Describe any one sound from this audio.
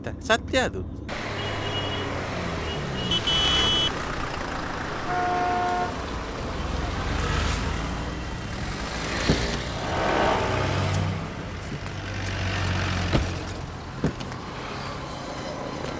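Traffic hums along a street, with motorbikes passing.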